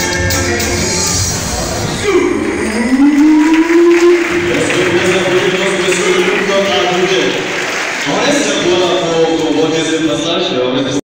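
A young man sings into a microphone through loudspeakers in an echoing hall.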